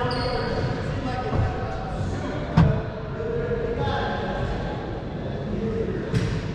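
A man talks casually across the court.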